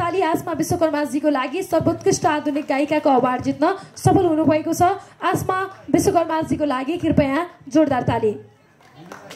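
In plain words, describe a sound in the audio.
A woman speaks with animation through a loudspeaker in a large room.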